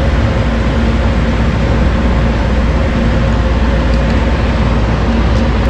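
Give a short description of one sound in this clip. A screwdriver scrapes and clicks against metal terminals.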